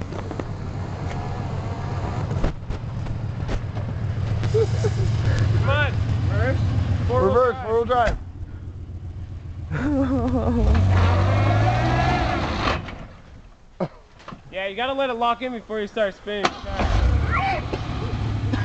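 A small SUV's V6 engine revs while stuck in mud.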